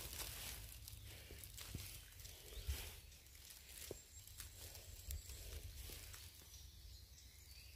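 Fingers rustle through dry leaves close by.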